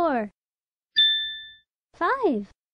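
A bright chime rings once.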